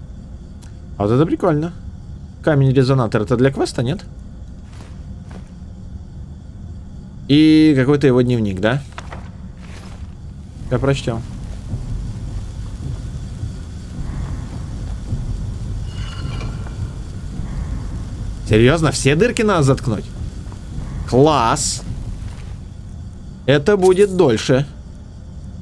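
A young man talks into a close microphone in short, lively bursts.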